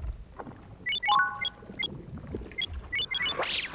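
Quick electronic beeps click through a menu.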